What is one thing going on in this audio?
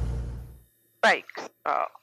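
A man speaks over a headset intercom.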